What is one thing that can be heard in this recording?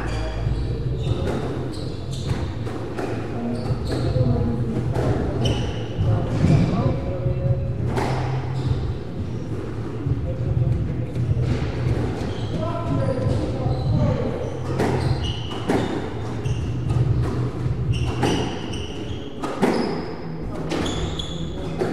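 A squash ball smacks off a racket and the wall with sharp echoing thwacks.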